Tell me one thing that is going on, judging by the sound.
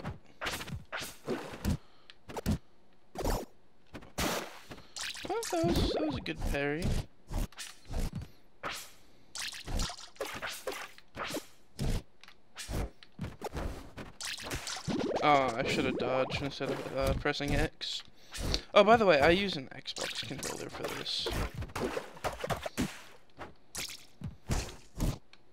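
Fighting game hits thud and crack in quick bursts.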